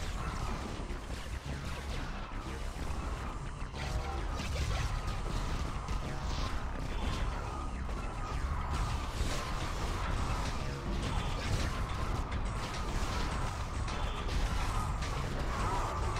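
Laser weapons zap and crackle rapidly.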